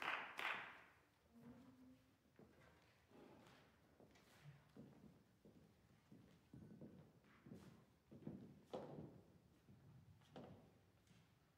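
Footsteps walk across a wooden stage in a large echoing hall.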